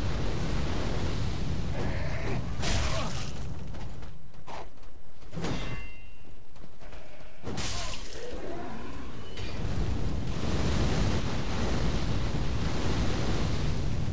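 Flames roar and whoosh loudly.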